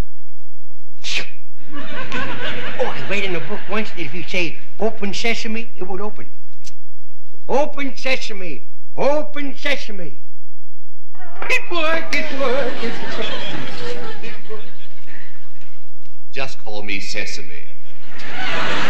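A man speaks loudly and theatrically.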